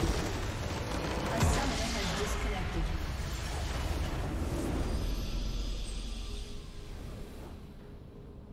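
A massive magical explosion booms and rumbles.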